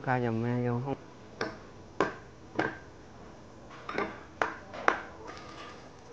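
A metal ladle clinks against a bowl.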